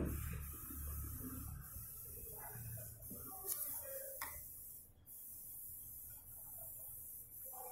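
A felt-tip pen squeaks softly as it draws across paper.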